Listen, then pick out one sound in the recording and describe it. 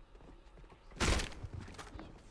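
A weapon strikes with a sharp thud.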